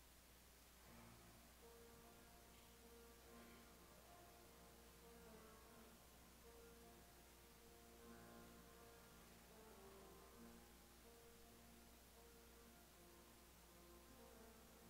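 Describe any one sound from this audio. An organ plays a slow, quiet hymn.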